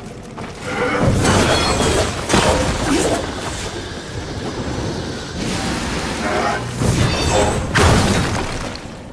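A blade whip slashes and strikes with sharp, crackling impacts.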